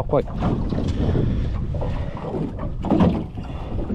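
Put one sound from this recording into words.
A fish flaps and thumps against a hard floor.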